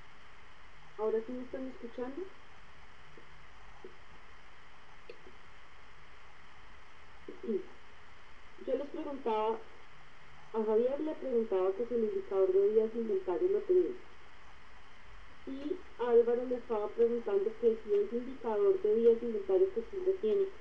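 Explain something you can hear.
A woman speaks calmly through an online call, with pauses.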